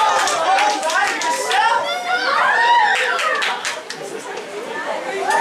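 A crowd of young people cheers and shouts.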